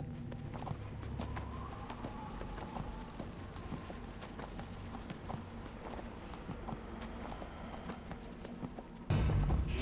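Hooves clop steadily as a mount trots along.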